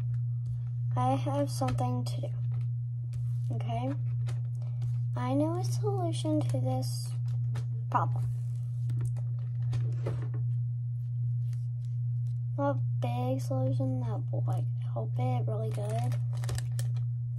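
A young girl speaks calmly, close by.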